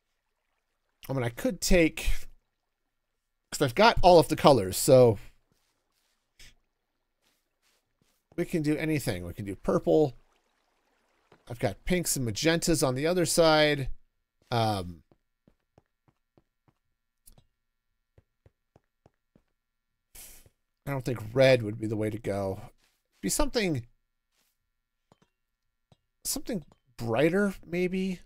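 A middle-aged man talks with animation into a close microphone, in short bursts with pauses.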